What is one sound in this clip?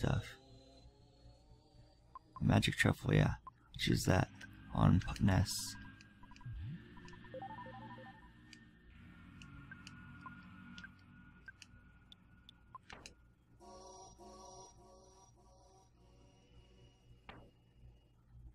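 Cheerful electronic game music plays.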